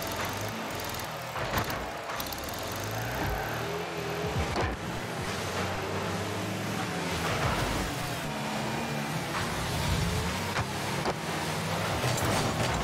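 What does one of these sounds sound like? A game car engine hums steadily as it drives.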